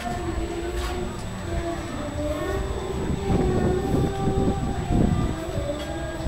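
A middle-aged woman talks close by.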